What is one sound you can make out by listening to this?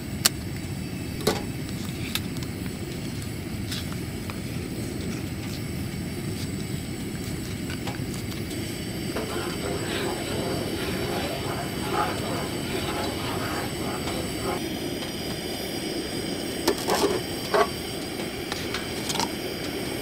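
A gas stove burner roars steadily.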